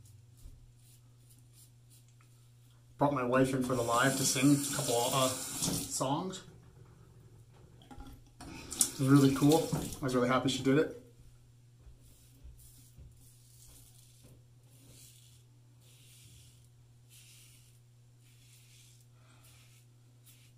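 A razor scrapes over stubble in short strokes.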